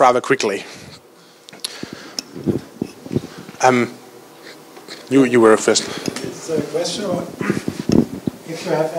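A man speaks calmly through a microphone in a large room with a slight echo.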